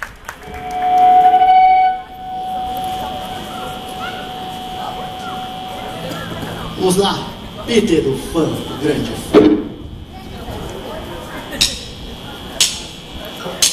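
Electric guitars play loudly, with a long ringing note.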